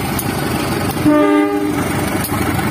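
A train horn blares briefly, close by.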